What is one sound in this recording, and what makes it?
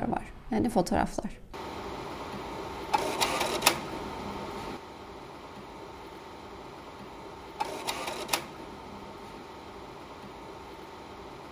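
A projector fan hums steadily.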